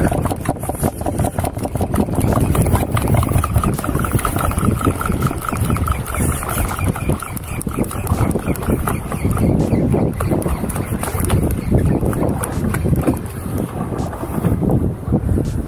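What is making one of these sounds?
Waves slap against a boat's hull.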